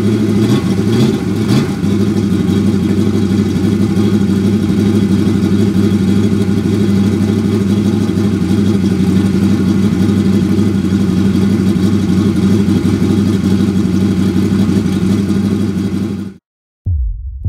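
A loud racing engine idles roughly on a test stand.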